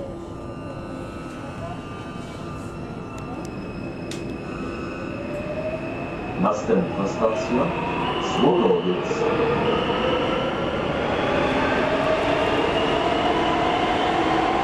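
A metro train hums and whines as it pulls away and speeds up.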